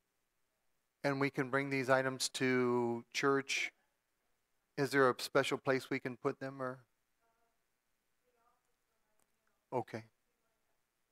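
An older man speaks through a microphone.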